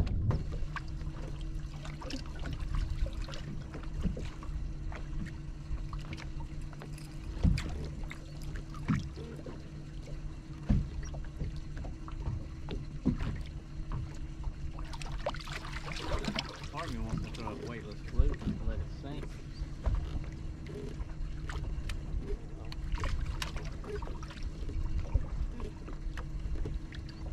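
A boat's motor hums steadily.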